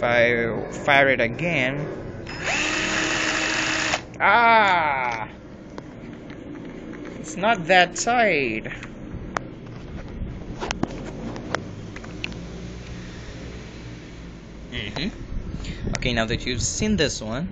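A cordless drill whirs in short bursts, its pitch rising and falling as it speeds up and slows down.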